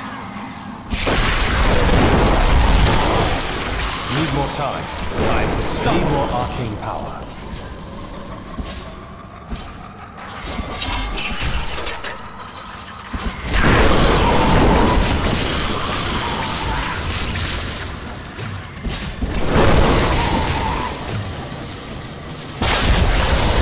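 Crackling lightning spells burst loudly in a game.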